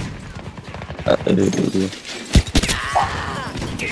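Gunshots rattle in quick bursts.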